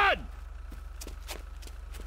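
Footsteps run across gravel.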